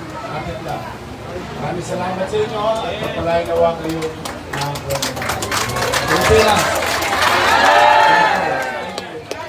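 A large crowd talks and calls out outdoors.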